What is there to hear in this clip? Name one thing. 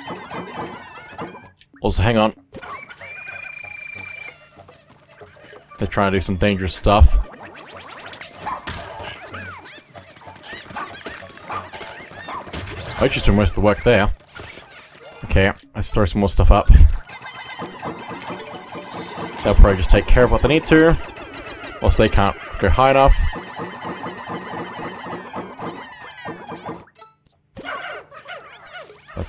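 Tiny cartoon creatures squeak and chatter in high voices.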